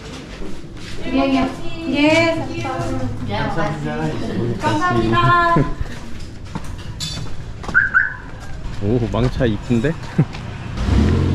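A young woman talks brightly close by.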